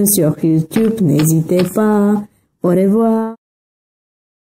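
A cartoonish, pitched-up voice sings and talks with animation, close to the microphone.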